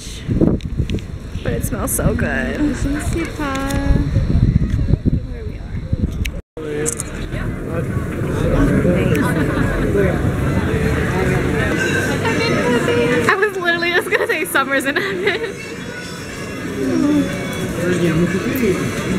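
A crowd chatters in the background.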